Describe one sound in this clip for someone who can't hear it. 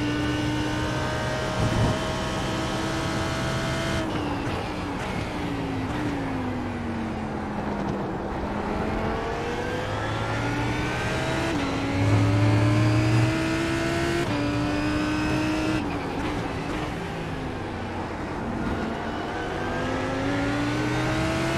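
A race car engine revs up and down through the gears, heard from inside the car.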